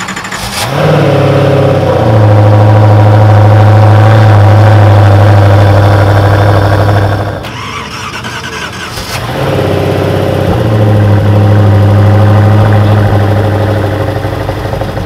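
A sports car engine revs loudly and holds at a high roar.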